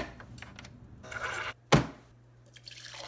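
Liquid pours into a plastic cup.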